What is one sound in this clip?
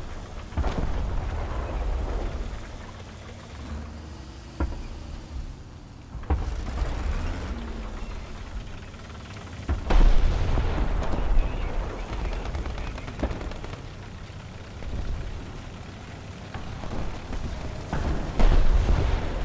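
A tank cannon fires with loud booming shots.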